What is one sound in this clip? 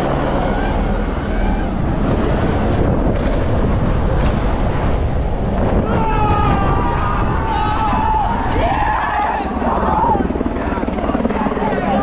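Wind rushes loudly past outdoors.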